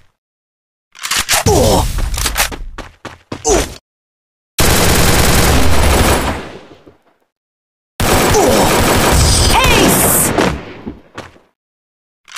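A young man talks excitedly and shouts close to a microphone.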